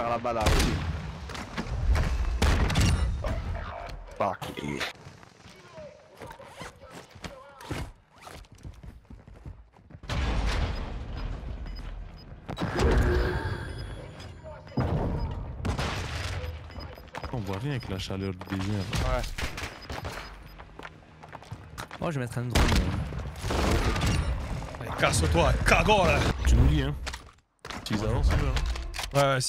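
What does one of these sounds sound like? Gunshots bang in quick bursts.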